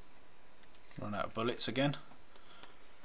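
A staple gun snaps into a wooden board.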